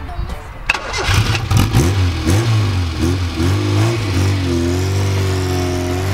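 A car engine revs repeatedly through a loud exhaust, then settles into a deep idle.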